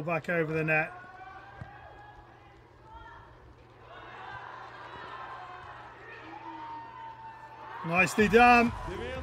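A crowd cheers in a large arena.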